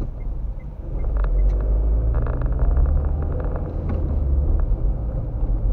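A truck's engine rumbles close by as the car passes it.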